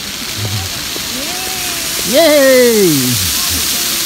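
Fountain jets splash and spatter water close by.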